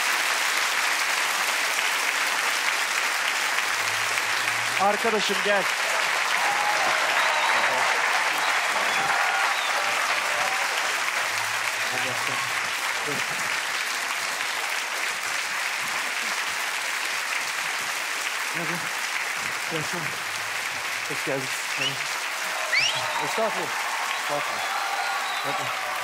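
A large crowd applauds and cheers steadily in a big hall.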